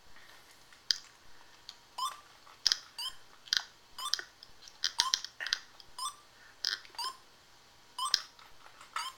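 A video game gives quick, repeated short electronic beeps.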